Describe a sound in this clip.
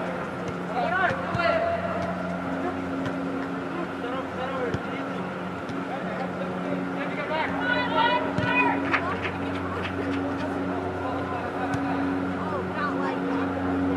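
A ball thuds as it is kicked.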